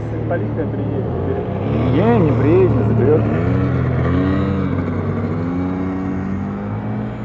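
Car engines idle and rumble steadily nearby.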